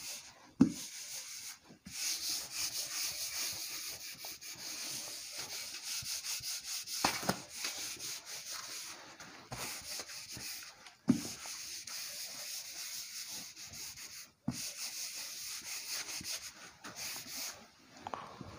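A cloth rubs and squeaks across a whiteboard.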